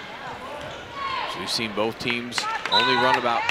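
A crowd in a large echoing gym cheers and shouts.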